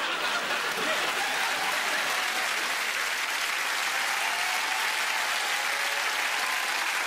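A studio audience claps steadily.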